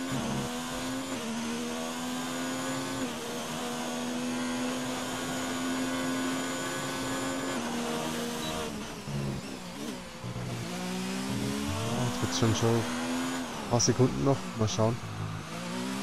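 A racing car engine whines at high revs, shifting up and down through the gears.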